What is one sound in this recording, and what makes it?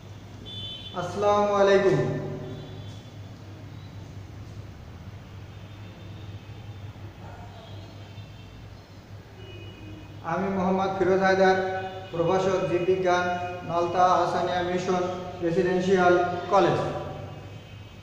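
A middle-aged man speaks calmly and clearly into a nearby microphone, as if giving a lecture.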